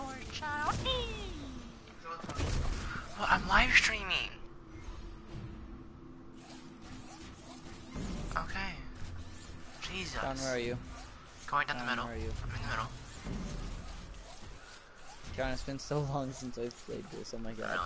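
Electronic game sound effects whoosh and hum.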